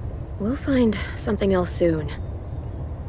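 A teenage girl speaks softly and reassuringly.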